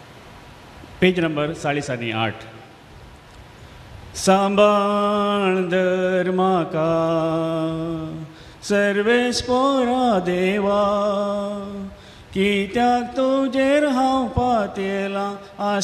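A middle-aged man sings slowly through a microphone and loudspeakers.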